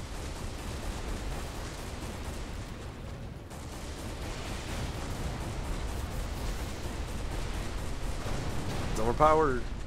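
Explosions boom and crackle.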